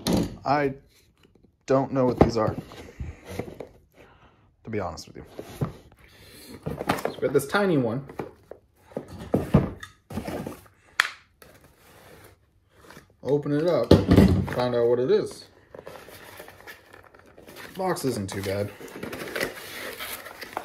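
Cardboard packaging rustles and scrapes as a box is handled and opened.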